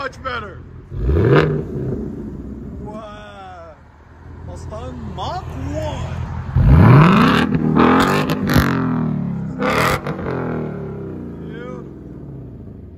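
A car engine revs hard in sharp bursts, with a loud exhaust roar.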